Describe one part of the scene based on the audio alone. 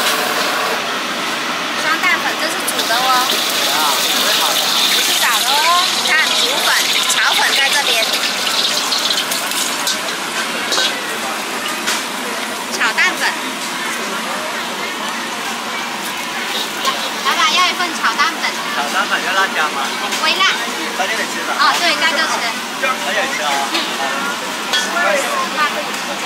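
Food sizzles as it fries in a hot pan.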